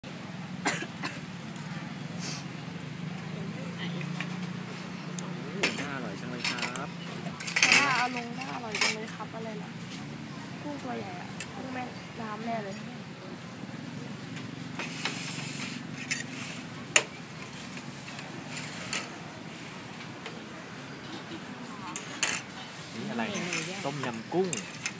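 Several adults chat close by.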